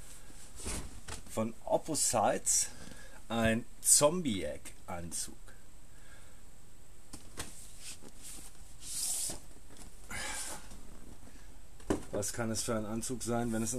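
Stiff paper rustles and flaps as it is handled.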